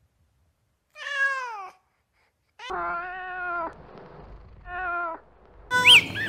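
A cat meows several times.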